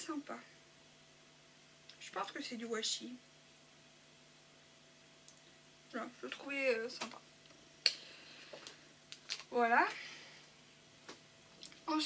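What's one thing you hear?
A woman speaks calmly and close to a microphone, in short phrases with pauses.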